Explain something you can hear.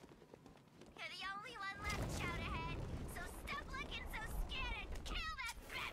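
Wind rushes past loudly during a fast glide.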